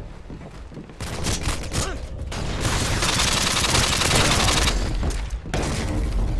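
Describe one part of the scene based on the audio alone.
Rapid gunfire rattles at close range.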